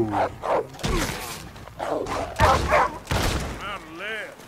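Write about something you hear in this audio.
A rifle fires several loud shots.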